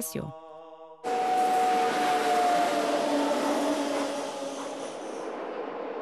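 A train rushes past with a loud rushing roar.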